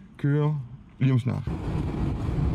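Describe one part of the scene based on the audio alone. A man speaks close by in a calm voice.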